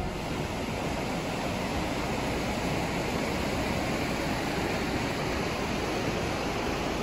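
A fast river rushes and roars steadily over rocks close by.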